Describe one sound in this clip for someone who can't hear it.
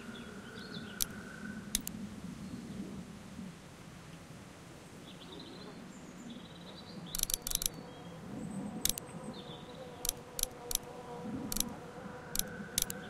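A computer mouse clicks sharply several times.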